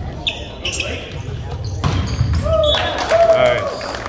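A volleyball is struck hard in an echoing gym.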